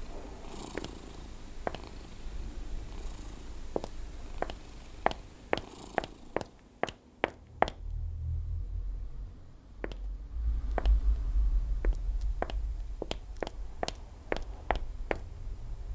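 Footsteps echo on a hard concrete floor.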